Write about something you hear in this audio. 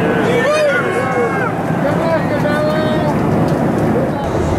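A man sings loudly through a loudspeaker.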